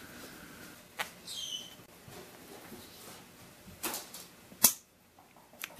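Nail clippers snap shut with sharp clicks.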